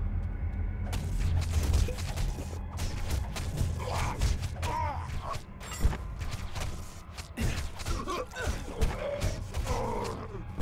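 Blades strike and clash in a fast fight.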